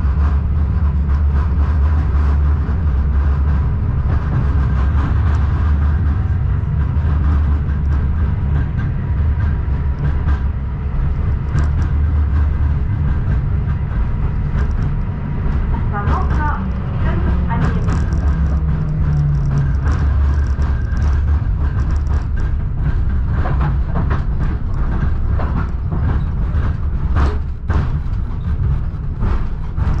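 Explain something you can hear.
A vehicle engine rumbles low and steady from inside, with road noise.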